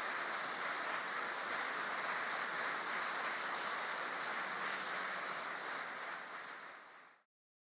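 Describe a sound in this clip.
A large audience applauds steadily in an echoing hall, then the applause fades away.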